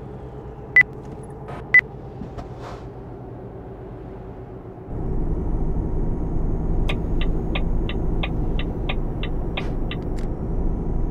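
A truck engine hums steadily and grows louder partway through.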